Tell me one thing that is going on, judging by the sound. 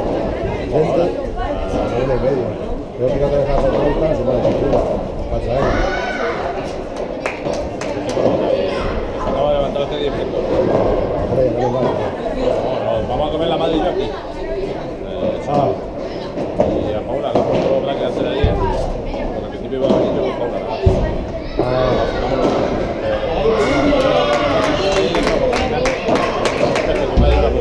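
Boys shout and chatter in a large echoing hall.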